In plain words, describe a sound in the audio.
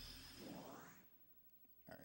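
A video game plays a bright electronic chime that sweeps and fades.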